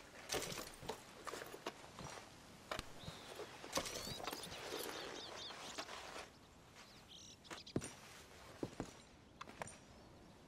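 Crockery and small objects clink and knock as hands rummage through a cupboard.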